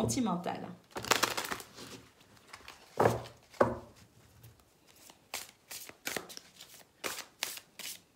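Playing cards riffle and slap together as they are shuffled by hand.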